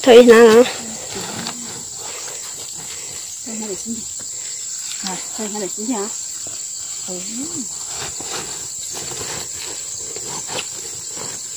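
Leafy greens rustle as they are stuffed into a sack.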